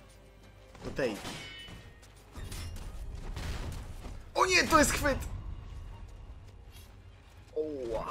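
Steel swords clash and ring sharply.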